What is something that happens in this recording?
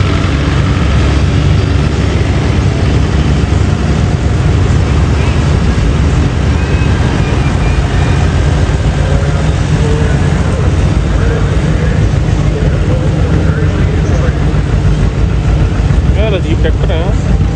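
An old tractor engine chugs loudly close by as it rolls past.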